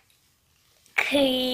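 A young child laughs loudly up close.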